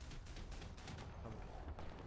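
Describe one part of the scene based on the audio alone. A tank cannon fires with a sharp bang.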